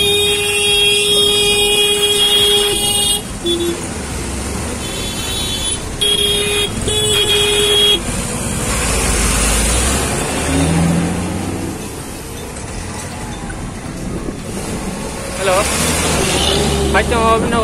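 A small motor rickshaw rumbles and hums along a road.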